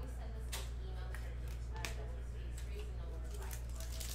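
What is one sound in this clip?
A foil card pack crinkles in a man's hands.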